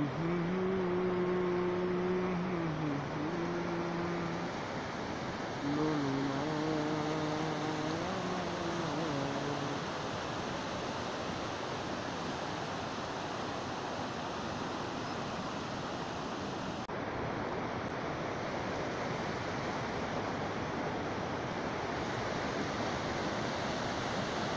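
A fast river rushes loudly over rocks.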